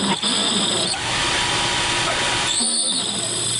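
A spray bottle hisses as fluid is sprayed.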